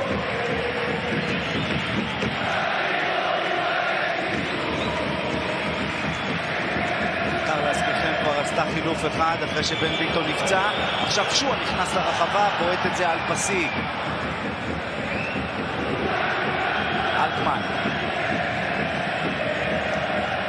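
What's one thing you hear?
A large stadium crowd roars and chants steadily all around.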